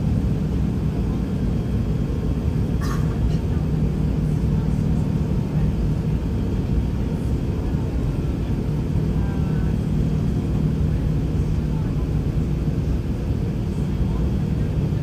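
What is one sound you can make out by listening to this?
A jet airliner's engines drone with a steady low rumble.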